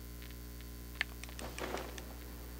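Quick scuffing steps sound as a figure climbs up rock.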